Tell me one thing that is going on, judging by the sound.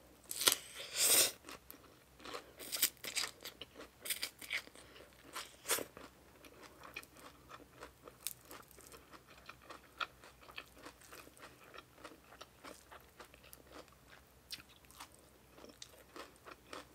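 A woman chews and crunches food wetly, close up.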